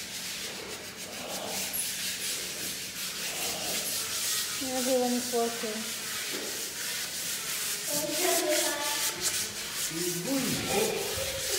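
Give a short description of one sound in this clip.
Hands rub and press against a wooden panel.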